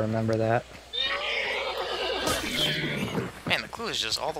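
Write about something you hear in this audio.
A horse whinnies loudly.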